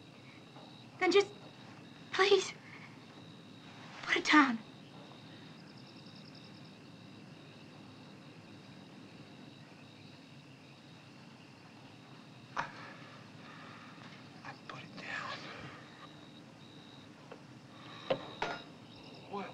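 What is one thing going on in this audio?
A woman speaks in short, frightened bursts close by.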